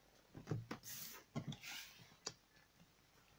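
Cards slide and tap softly onto a table.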